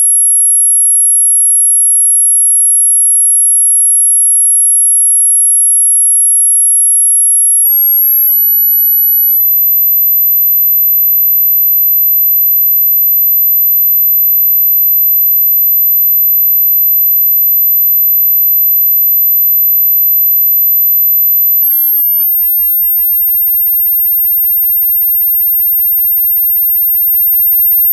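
A very high, steady electronic tone whines and steps up in pitch twice.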